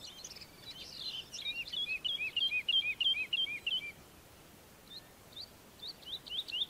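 A small bird sings a fast series of sweet, falling whistled notes.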